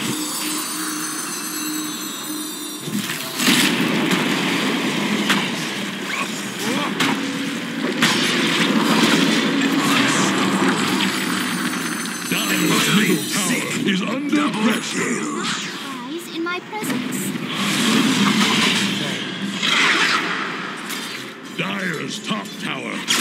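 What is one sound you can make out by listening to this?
Weapons clash and strike in a busy battle.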